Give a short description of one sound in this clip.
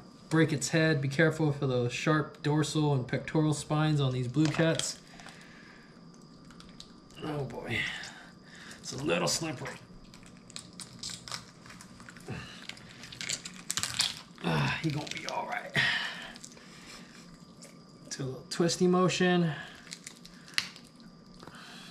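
A knife cuts through fish on a cutting board.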